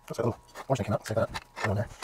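Small parts rattle in a plastic tub as a hand rummages through them.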